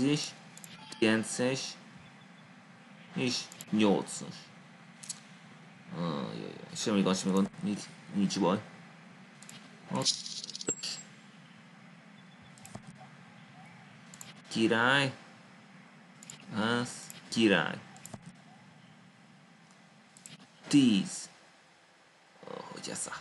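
A man talks casually in short bursts, close to a microphone.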